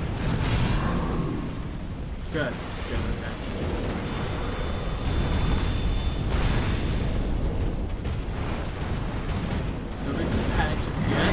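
Swords clash and thud in a fight.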